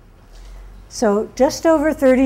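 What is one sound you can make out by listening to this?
A middle-aged woman speaks loudly with animation, close by.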